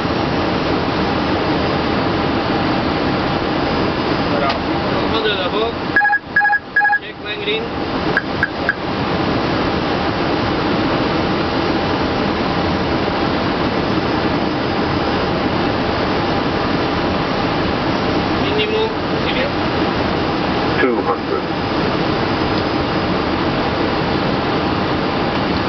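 A steady, loud roar of jet engines and rushing air fills the cabin.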